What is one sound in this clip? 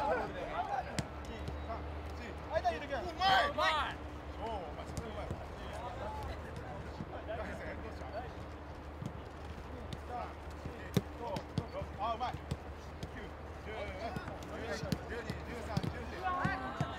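Footballs are kicked on grass with dull thuds.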